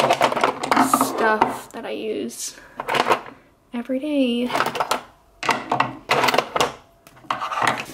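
Small plastic items clatter and click in a drawer.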